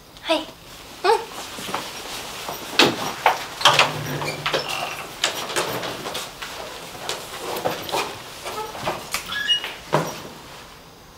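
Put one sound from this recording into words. Footsteps shuffle and bags rustle.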